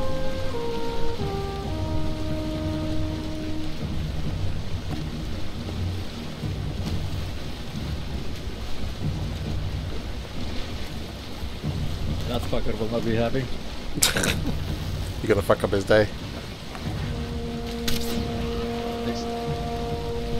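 Water rushes and splashes against a boat's hull as it moves swiftly.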